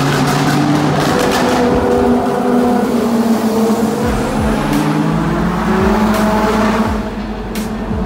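A motorcycle engine roars and revs loudly, echoing as if in a tunnel.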